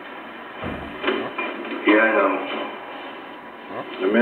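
Another man answers briefly through a television loudspeaker.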